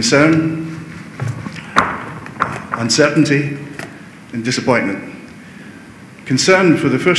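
A middle-aged man speaks into a microphone through loudspeakers in a large echoing hall.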